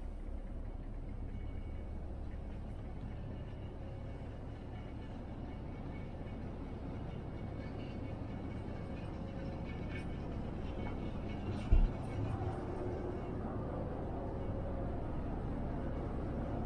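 A ship's engine drones low and steady.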